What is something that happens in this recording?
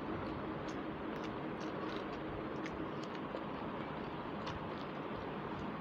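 Fingers squish and mix soft rice.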